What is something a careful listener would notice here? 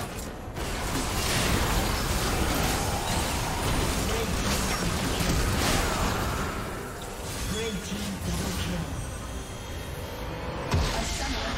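Game spell blasts and hits crackle and boom in a busy fight.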